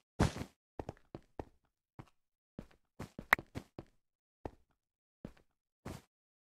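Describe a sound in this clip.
Footsteps tap quickly on stone blocks in a video game.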